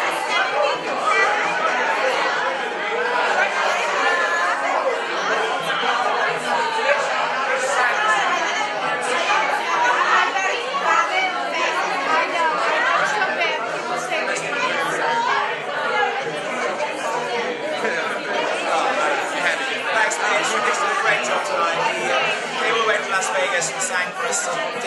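A crowd of adults chatters loudly all around.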